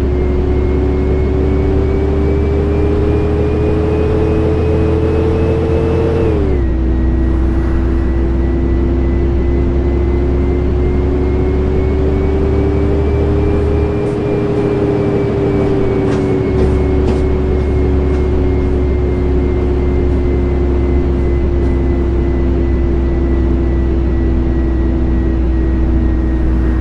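A bus engine hums steadily, rising in pitch and then dropping as the gear changes.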